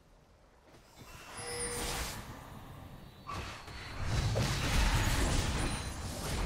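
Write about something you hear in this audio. Game sound effects of spells and hits burst in a fight.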